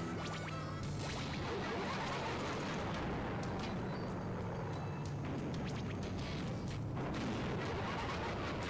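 A game car's engine drones as it drives.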